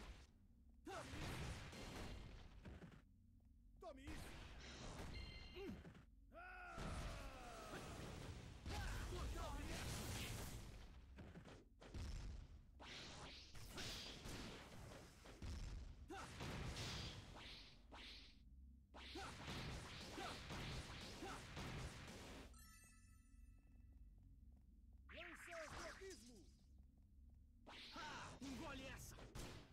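Magic blasts and sword strikes crash in quick bursts.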